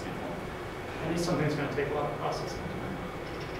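A young man speaks briefly and calmly in a large room.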